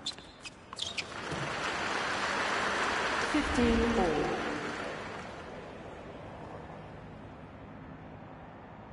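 A crowd cheers and applauds loudly, then fades.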